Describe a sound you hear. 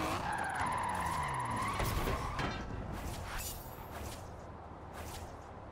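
A car engine roars and winds down as the car slows.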